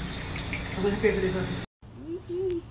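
Water runs into a sink.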